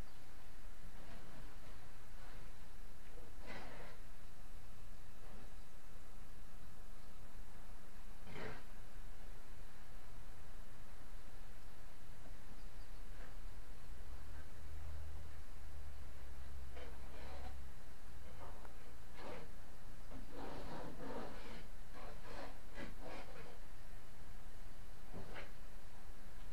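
A trowel scrapes against a wall in short, uneven strokes.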